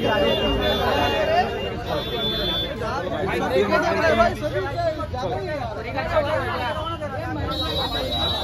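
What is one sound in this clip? A crowd of men talks and calls out loudly at close range.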